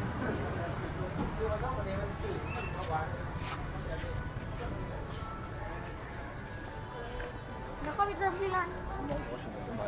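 Voices chatter in a busy outdoor crowd.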